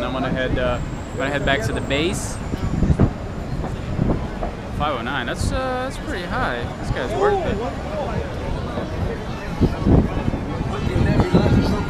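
A young man talks animatedly close to a microphone.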